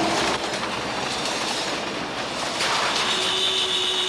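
A heavy machine whirs and rumbles as it drives forward.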